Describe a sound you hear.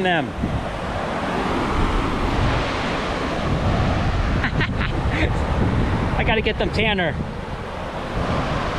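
Waves wash and fizz over sand.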